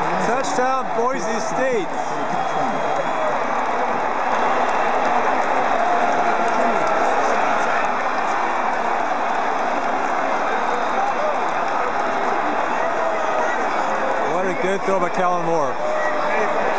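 A huge stadium crowd roars and cheers loudly all around.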